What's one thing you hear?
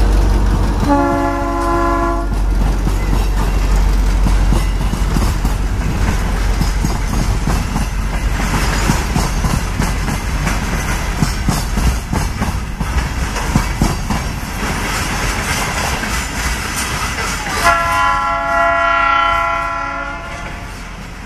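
A train horn blows loudly, twice.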